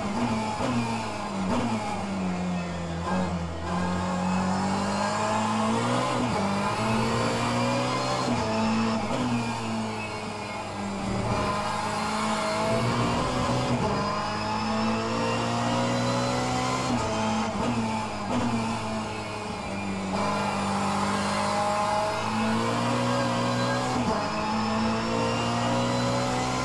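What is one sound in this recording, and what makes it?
A racing car engine roars from loudspeakers, rising in pitch and dropping sharply at each gear change.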